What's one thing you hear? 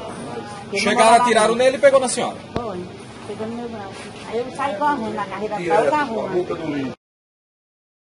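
A middle-aged woman speaks emotionally and tearfully into a microphone up close.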